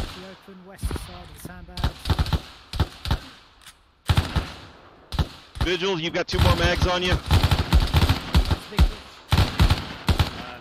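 Rifle shots crack nearby in bursts.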